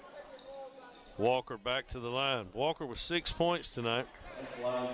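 A basketball bounces on a wooden floor in an echoing gym.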